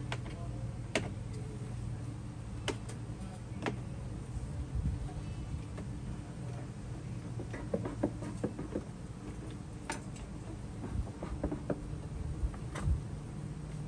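Wooden hive parts knock and clatter nearby.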